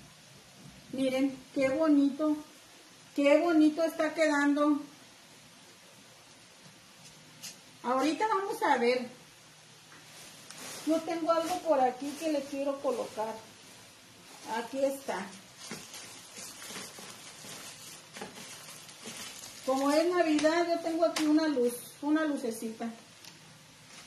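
A woman talks calmly and close by, in bursts with pauses.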